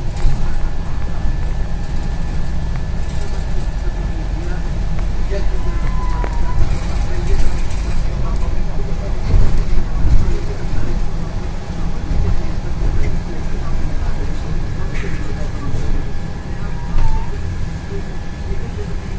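Loose panels rattle and creak inside a moving bus.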